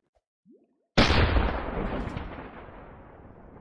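A cannon fires with a loud boom that slowly fades.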